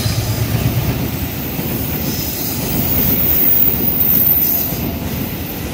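Passenger coaches rumble and clatter over the rails at speed.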